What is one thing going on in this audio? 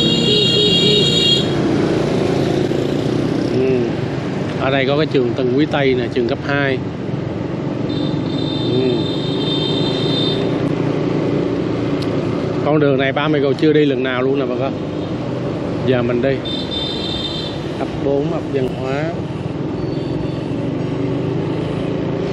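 A motorbike engine hums steadily at close range.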